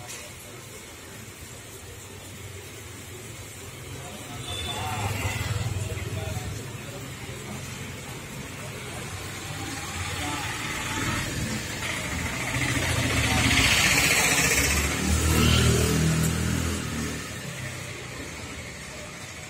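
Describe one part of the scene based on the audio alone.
A cloth rubs and squeaks against a car's painted body.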